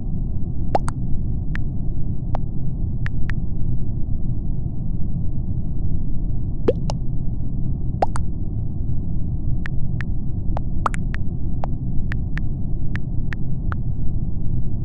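Keyboard keys tap and click as someone types.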